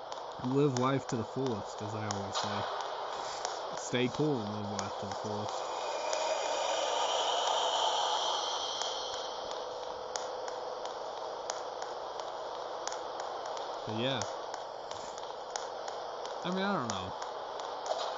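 A young man talks into a microphone in short, quiet bursts with pauses between them.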